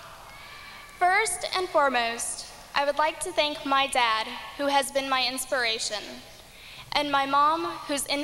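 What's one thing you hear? A second young woman speaks with animation through a microphone.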